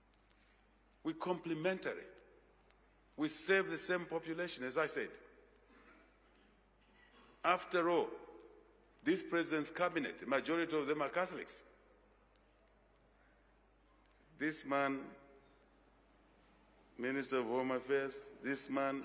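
A man speaks through a microphone in slow, measured bursts with long pauses.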